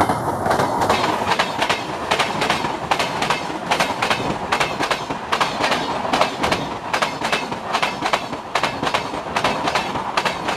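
A passenger train rumbles past close by.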